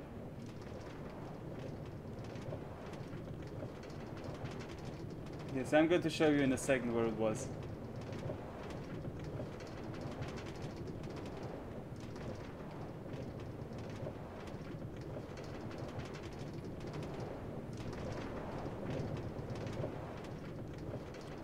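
A minecart rattles along rails.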